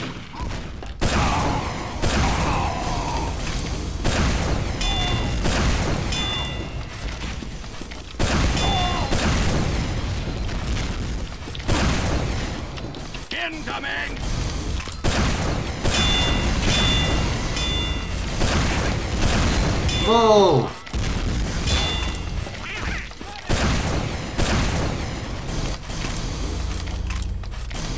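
Rockets whoosh and explode with loud booms.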